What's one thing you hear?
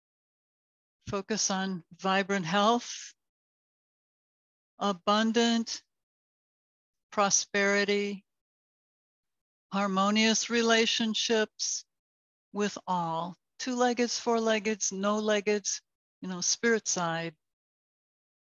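A woman speaks calmly and slowly through a microphone, in short phrases with pauses.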